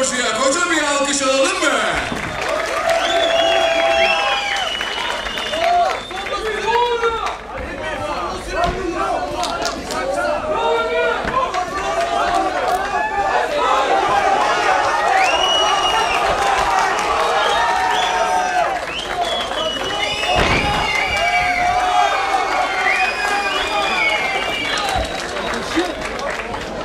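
A crowd shouts and cheers loudly.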